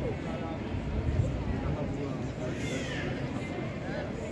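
Young women talk quietly nearby.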